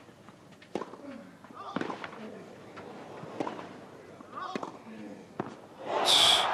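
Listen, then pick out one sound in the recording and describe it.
Tennis balls are struck hard back and forth.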